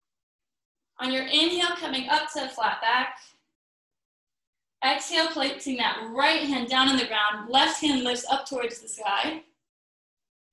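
A woman calmly gives instructions over an online call.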